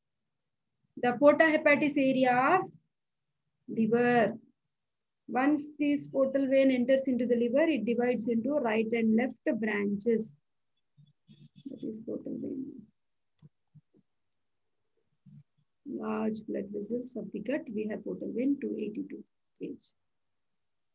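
A young woman speaks calmly over an online call, explaining as she goes.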